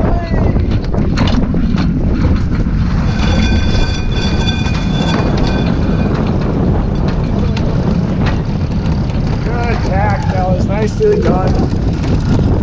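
Water rushes and splashes along a sailboat's hull.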